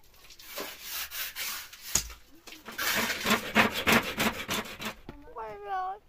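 A trowel scrapes wet plaster across a wall.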